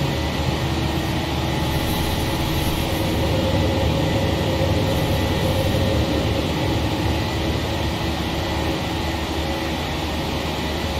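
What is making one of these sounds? Wind rushes loudly past an airliner's cockpit.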